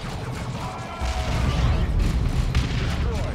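A heavy explosion booms with a low rumble.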